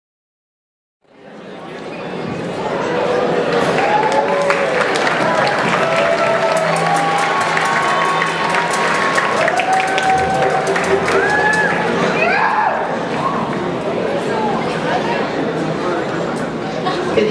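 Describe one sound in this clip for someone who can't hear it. A live band plays a lively song in a large hall.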